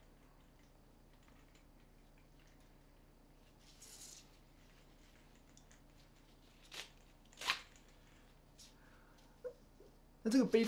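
Fabric and straps rustle as a bag is handled.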